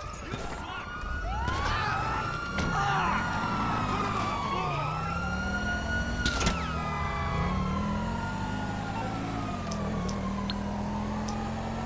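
A car engine revs and roars as the car speeds off.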